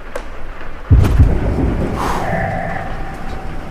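A short chime rings out.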